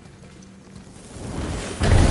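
A deep magical rumble swells up and grows loud.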